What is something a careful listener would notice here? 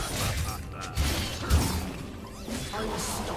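Game impact sounds thud repeatedly.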